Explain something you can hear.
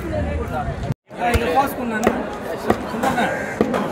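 A cleaver chops through meat on a wooden block.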